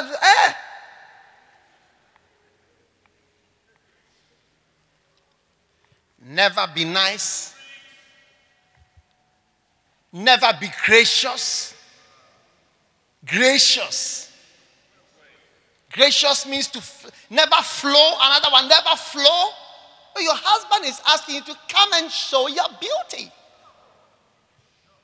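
A man speaks with animation into a microphone over loudspeakers, in bursts with pauses, in a large echoing hall.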